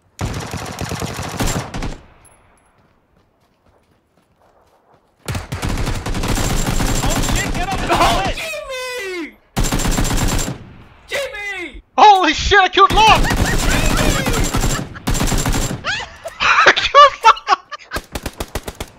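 A rifle fires in rapid bursts, close by.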